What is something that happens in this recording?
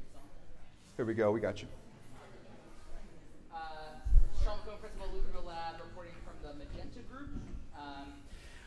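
A woman speaks up close.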